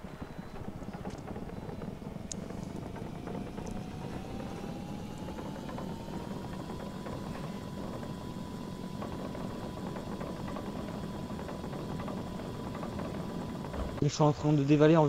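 A small motor whines, rising in pitch as a cart speeds up, then holds steady.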